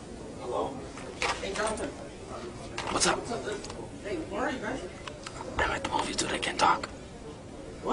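A young man talks quietly into a phone up close.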